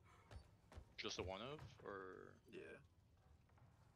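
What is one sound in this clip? A young man speaks casually and close to a microphone.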